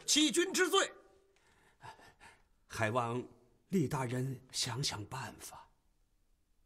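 An elderly man speaks pleadingly, close by.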